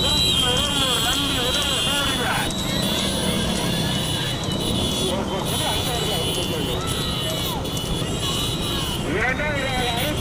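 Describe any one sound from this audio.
A man shouts excitedly over a loudspeaker.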